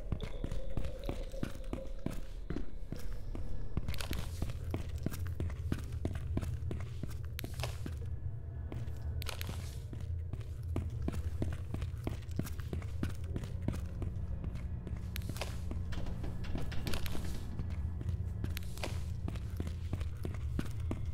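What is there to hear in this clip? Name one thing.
Footsteps echo steadily on a hard floor in a hollow corridor.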